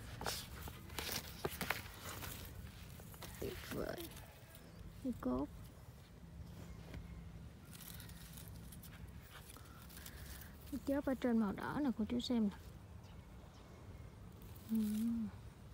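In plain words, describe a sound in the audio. Leaves rustle as a hand brushes through a potted shrub.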